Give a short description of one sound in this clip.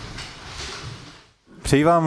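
A man speaks in an echoing room.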